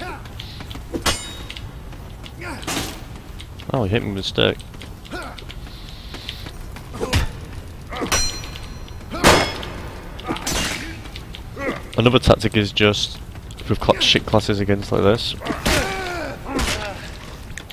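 Swords clash with sharp metallic clangs.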